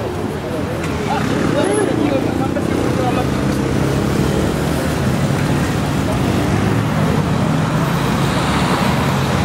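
Passers-by talk nearby outdoors.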